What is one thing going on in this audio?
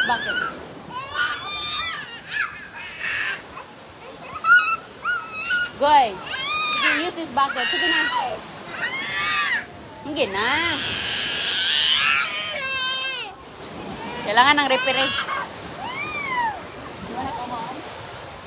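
Young children chatter and squeal in high voices close by.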